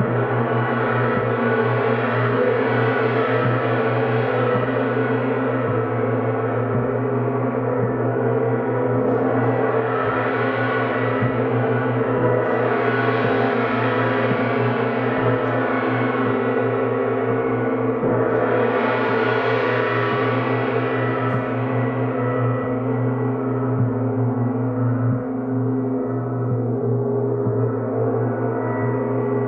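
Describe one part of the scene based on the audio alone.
Large gongs swell and roar in a dense, ringing wash.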